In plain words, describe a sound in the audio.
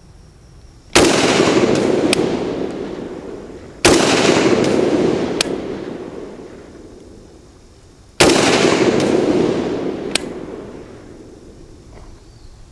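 A rifle fires loud single shots that echo and slowly fade.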